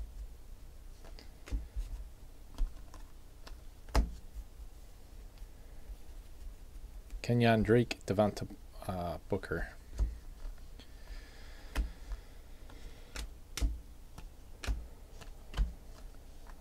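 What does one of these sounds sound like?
Trading cards snap and rustle as they are flipped through by hand.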